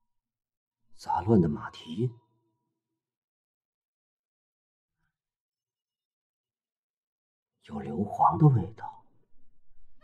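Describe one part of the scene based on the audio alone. A young man speaks quietly and tensely.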